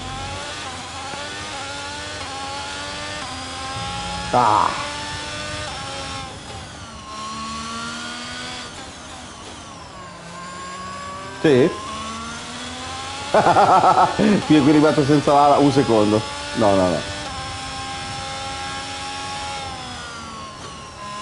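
A racing car engine whines, rising and falling in pitch as it shifts gears.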